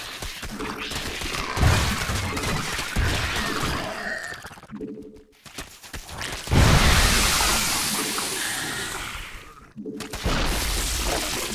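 Video game combat sounds crackle and boom with bursts of fire and explosions.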